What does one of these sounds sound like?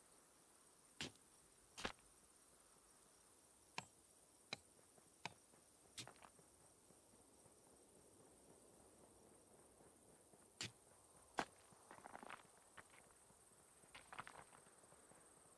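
Small game sound effects click and clink now and then.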